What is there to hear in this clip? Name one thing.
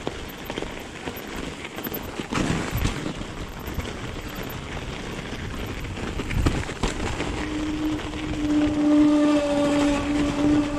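Bicycle tyres crunch and scrape over packed snow.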